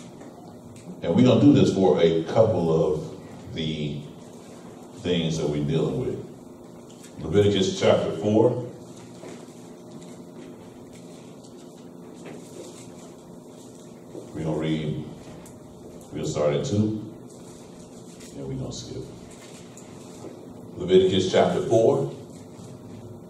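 A man speaks in measured bursts with long pauses, his voice echoing slightly in a room.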